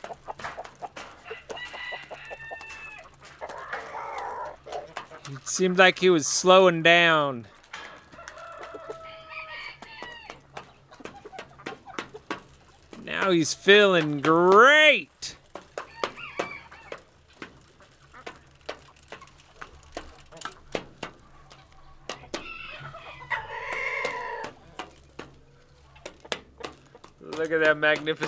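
A rooster pecks at grain on a metal roof with quick sharp taps.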